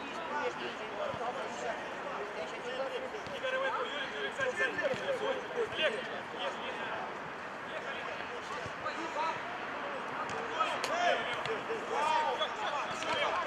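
Young men shout to each other outdoors.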